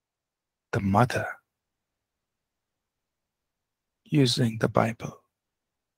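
A middle-aged man speaks calmly through a headset microphone on an online call.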